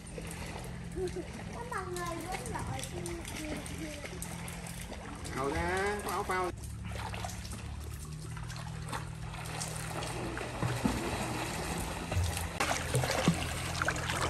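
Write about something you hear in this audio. Water splashes and laps as children move in a pool.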